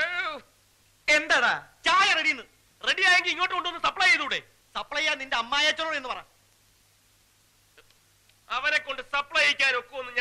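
A man speaks forcefully.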